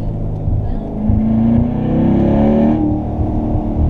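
A sports car engine revs up sharply and climbs in pitch.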